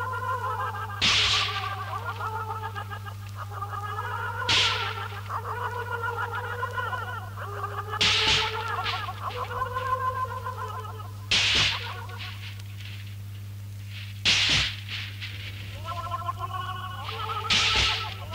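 Sharp bursts of hissing noise swell in every few seconds.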